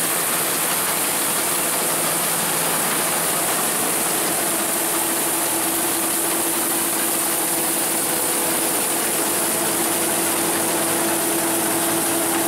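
A combine harvester rumbles and clatters steadily close by.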